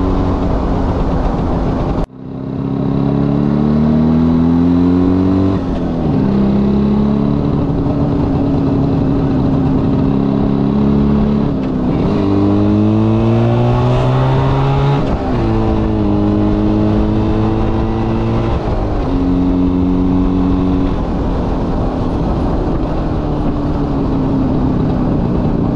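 A motorcycle engine hums close by, rising in pitch and dropping with each gear change.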